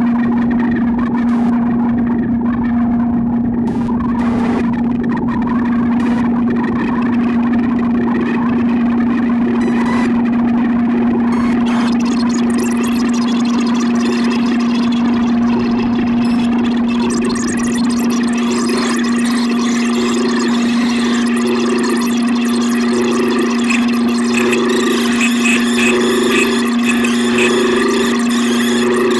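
An electronic synthesizer drones steadily with shifting, buzzing tones.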